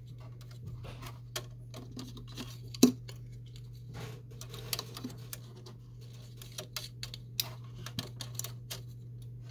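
Fingers tap and click against hard plastic parts.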